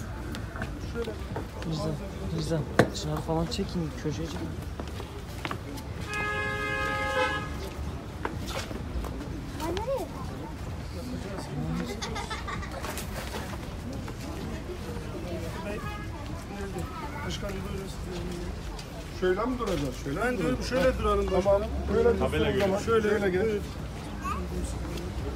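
Men talk nearby in a lively crowd outdoors.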